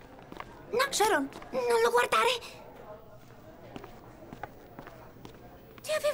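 A young girl speaks anxiously, her voice high and strained.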